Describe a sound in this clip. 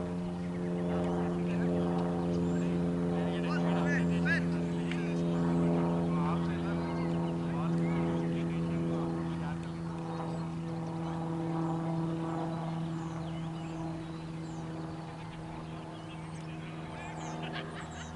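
Several men talk and call out to each other at a distance outdoors.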